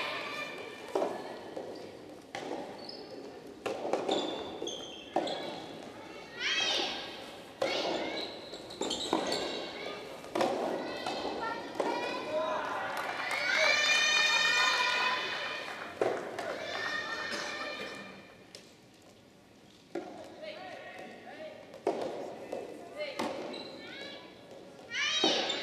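Rackets strike a tennis ball with sharp pops in a large echoing hall.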